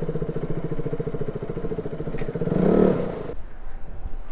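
A motorcycle engine idles and then cuts off.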